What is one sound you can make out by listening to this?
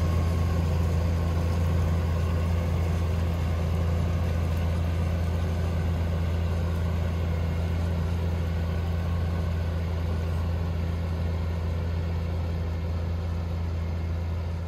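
A tractor engine drones steadily as it pulls a machine across a field, slowly fading as it moves away.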